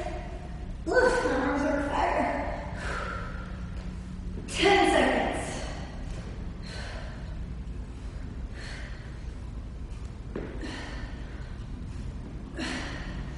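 A young woman talks calmly and clearly, close by, as if instructing.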